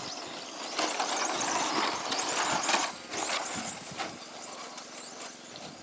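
A small toy car's electric motor whines loudly as it races past.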